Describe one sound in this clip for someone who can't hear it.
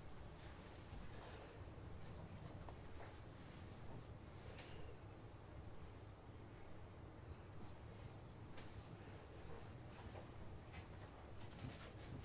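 Papers rustle in a man's hands.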